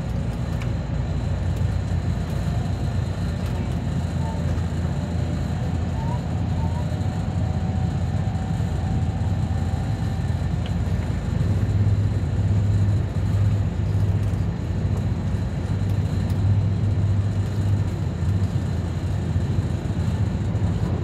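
A train rumbles steadily along the tracks, with a low droning hum.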